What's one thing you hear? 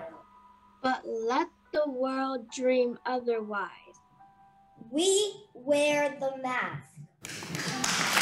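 A girl speaks with animation into a laptop microphone.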